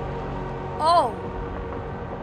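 A young boy exclaims loudly close to a microphone.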